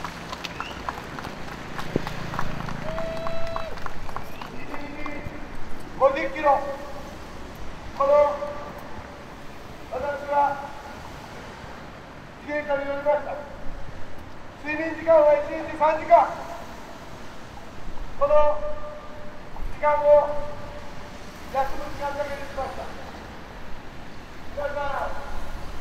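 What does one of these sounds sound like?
A middle-aged man speaks loudly and with animation through a microphone and loudspeakers, outdoors.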